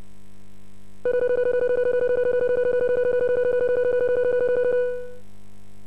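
Rapid electronic beeps tick steadily as a score counts up, then stop.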